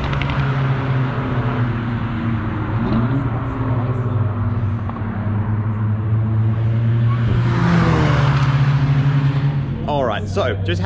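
Racing car engines drone steadily around a track.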